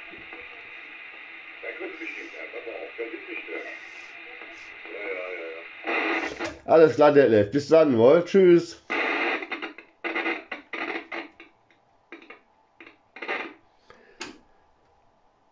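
A voice crackles through a radio loudspeaker.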